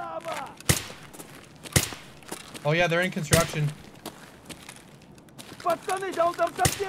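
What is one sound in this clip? A rifle fires sharp single shots indoors.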